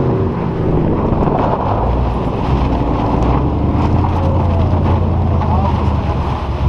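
A supercharged V6 sports sedan engine drones under load.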